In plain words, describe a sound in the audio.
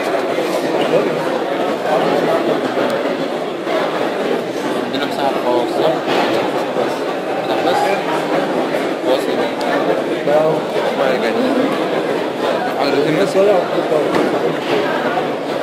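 A man lectures steadily, his voice a little distant.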